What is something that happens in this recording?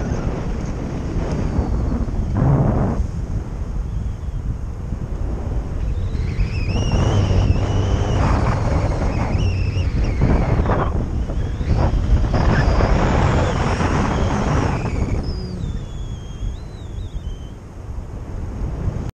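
Wind roars and buffets loudly against the microphone.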